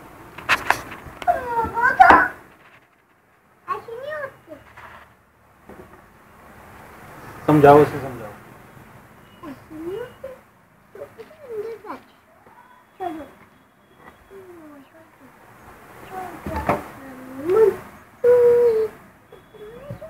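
A young boy talks and babbles playfully close by.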